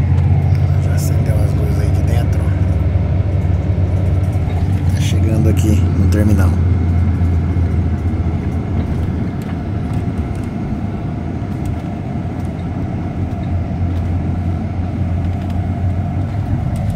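A bus engine hums low and steady from inside the cabin.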